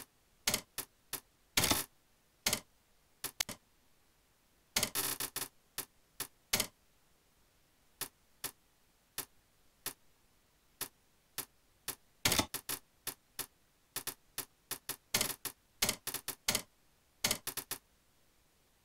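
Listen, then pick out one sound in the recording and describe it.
Short sharp menu clicks sound in quick bursts, then stop.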